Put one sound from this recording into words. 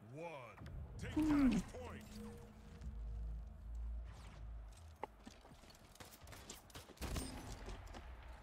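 Laser guns fire in quick bursts of shots.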